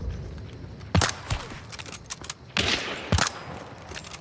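A rifle fires loud shots.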